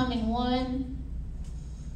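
A woman speaks briefly through a microphone, drawing out a word.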